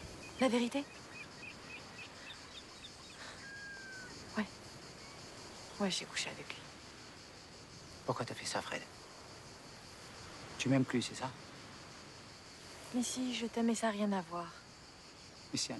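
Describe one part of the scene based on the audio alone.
A woman speaks quietly and close by.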